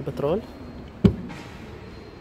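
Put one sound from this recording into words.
A small car flap clicks shut.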